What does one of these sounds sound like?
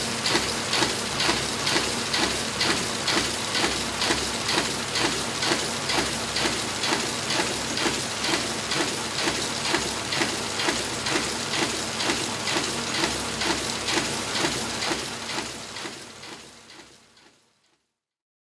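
A printing press runs with a fast, steady rhythmic clatter, then fades away.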